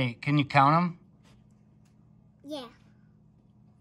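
A young child speaks close by.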